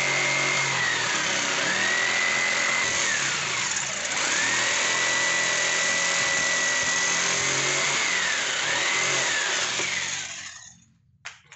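An electric jigsaw whines loudly as it cuts through wood.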